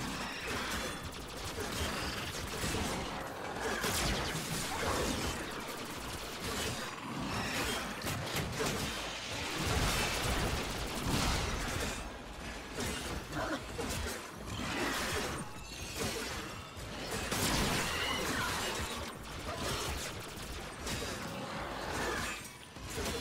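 Blades whoosh and slash through the air again and again.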